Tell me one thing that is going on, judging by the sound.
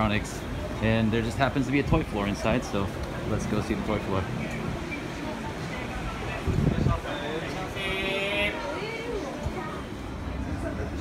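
Voices of a crowd murmur in a busy indoor space.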